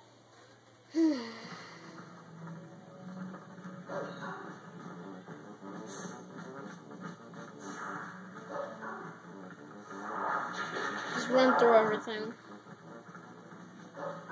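A video game's sound effects and music play through a television speaker.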